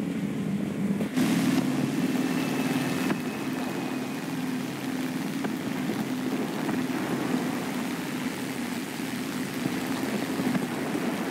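Twin propeller engines drone steadily.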